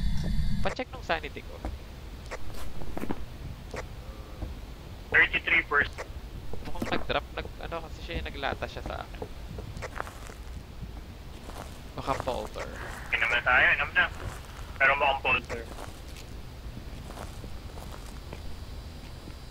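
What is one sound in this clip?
Footsteps thud on wooden boards and gravel.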